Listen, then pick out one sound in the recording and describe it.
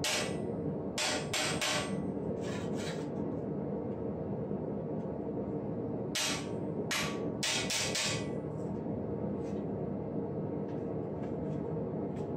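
A hammer bangs on sheet metal in sharp ringing strikes.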